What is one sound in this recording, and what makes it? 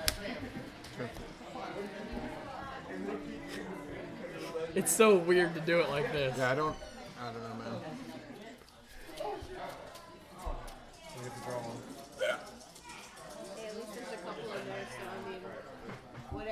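Playing cards slide and tap on a mat.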